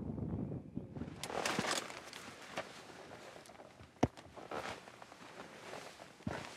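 Boots crunch and scrape on rock and dry twigs.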